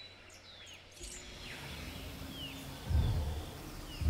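A large dinosaur lets out a deep rumbling groan.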